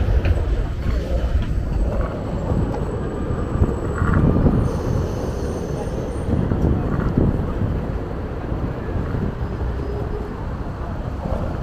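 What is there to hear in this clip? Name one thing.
Skateboard wheels roll and rumble over pavement.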